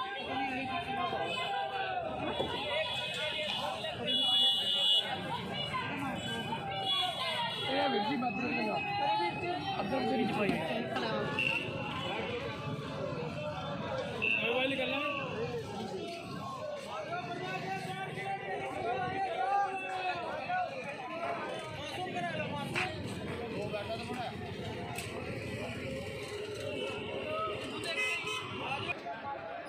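Many voices chatter in a busy outdoor market crowd.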